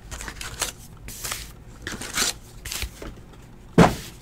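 Stacks of card packs knock and shuffle as they are set down.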